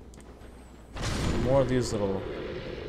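A sword strikes a creature with a heavy thud.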